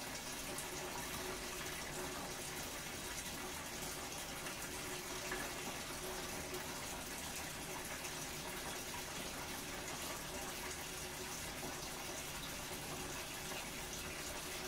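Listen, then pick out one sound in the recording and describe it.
A front-loading washing machine runs with a steady hum and churn.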